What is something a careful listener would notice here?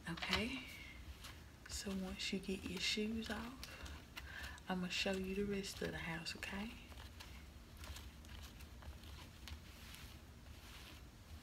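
Fingers rub and brush softly against fluffy slippers.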